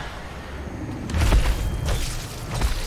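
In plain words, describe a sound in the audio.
A magic blade whooshes in a wide sweep.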